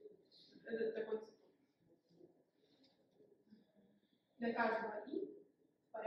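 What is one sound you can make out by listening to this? A young woman speaks through a microphone in a large room.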